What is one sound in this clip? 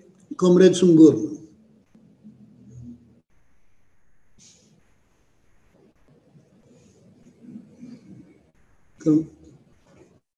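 An elderly man speaks briefly over an online call.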